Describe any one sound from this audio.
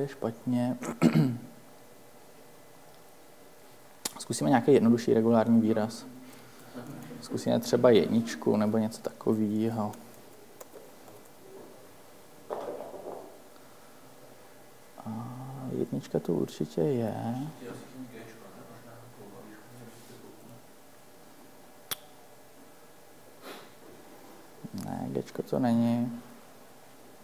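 A young man speaks calmly, with pauses.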